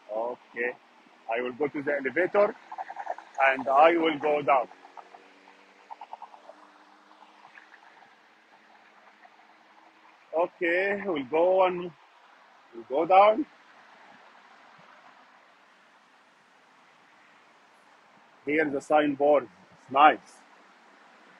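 A middle-aged man talks close to a phone microphone, with animation.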